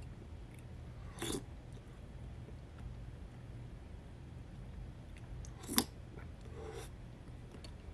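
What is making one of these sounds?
A man slurps from a spoon up close.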